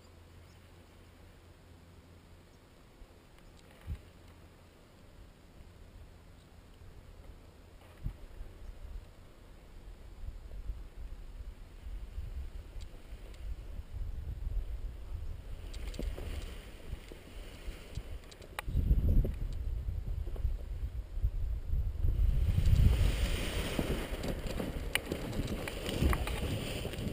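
Wind rumbles against the microphone outdoors, growing stronger and gustier.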